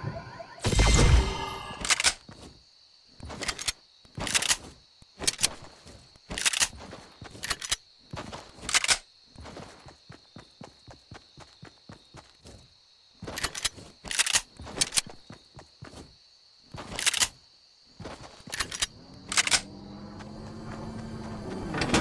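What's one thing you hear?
Footsteps pad quickly across grass.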